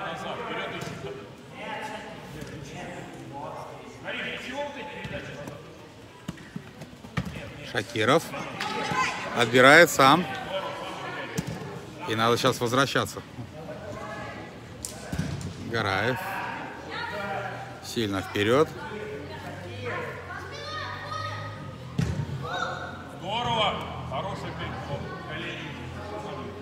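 Children shout and call out across a large echoing hall.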